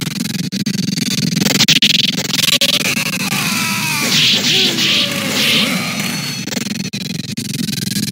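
Fast-paced game music plays throughout.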